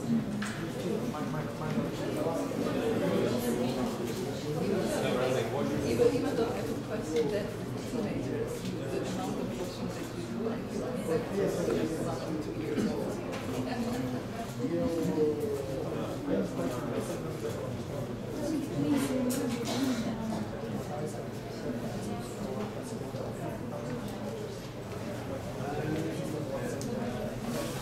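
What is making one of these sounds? A woman speaks calmly into microphones close by.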